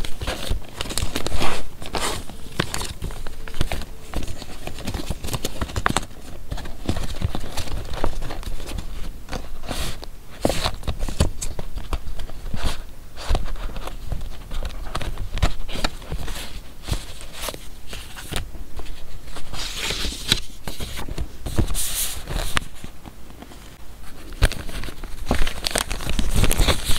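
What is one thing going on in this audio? Paper rustles and crinkles as hands leaf through stacked cards and pages up close.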